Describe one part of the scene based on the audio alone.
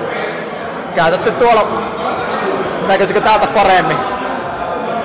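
A man speaks nearby in an echoing indoor space.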